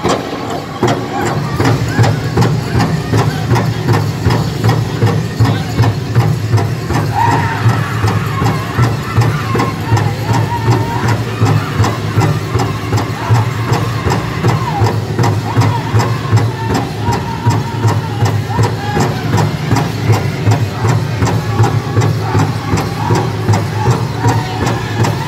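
A large drum beats in a steady, fast rhythm.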